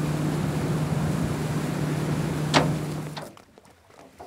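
A boat's outboard motor hums steadily.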